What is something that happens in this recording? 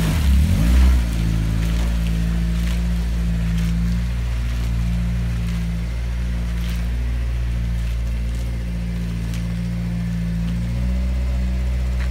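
A light sports car pulls away at low revs.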